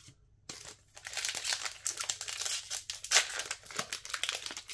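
A plastic foil wrapper crinkles and rustles close by.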